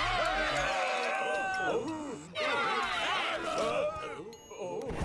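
A crowd of men and women shouts angrily together.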